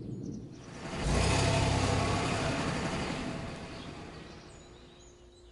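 A bus speeds off with a loud rushing whoosh that fades away.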